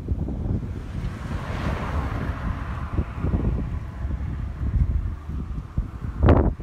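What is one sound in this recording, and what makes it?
Wind buffets and rumbles loudly past a moving car.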